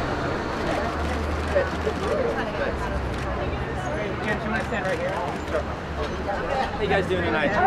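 A young man speaks cheerfully up close.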